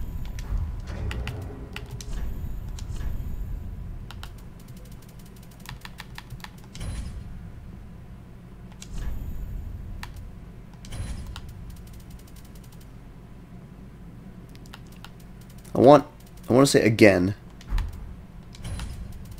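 Soft menu clicks tick as options are scrolled and selected.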